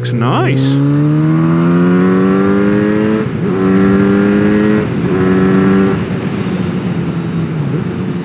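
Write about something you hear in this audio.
A motorcycle engine revs up loudly and shifts through gears.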